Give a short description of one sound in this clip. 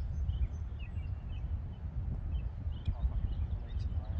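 A golf putter taps a ball.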